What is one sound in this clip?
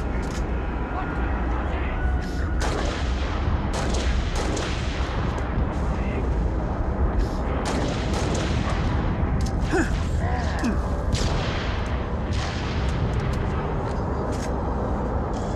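Rifle shots crack repeatedly, close by.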